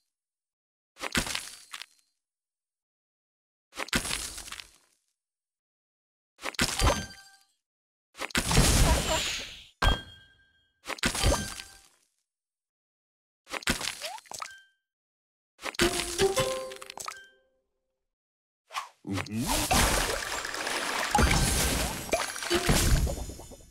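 Game pieces clear with short bright chiming bursts, again and again.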